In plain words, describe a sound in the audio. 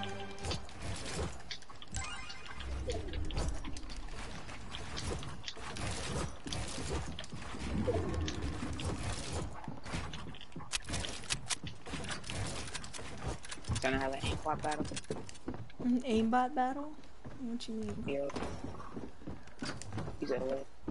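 Wooden building pieces clatter and snap into place in rapid bursts.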